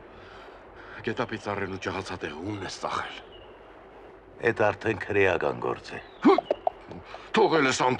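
An elderly man speaks forcefully close by.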